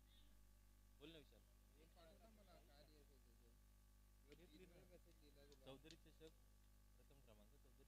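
Young men in a nearby crowd talk and call out outdoors.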